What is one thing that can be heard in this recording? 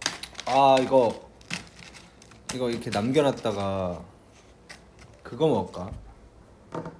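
A plastic food box rustles and clicks as it is opened.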